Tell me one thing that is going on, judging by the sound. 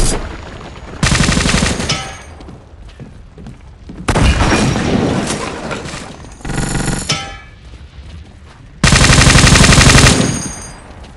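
A submachine gun fires rapid bursts at close range.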